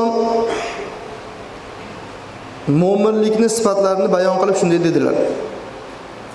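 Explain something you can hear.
A man chants in a drawn-out, melodic voice through a microphone, echoing in a large hall.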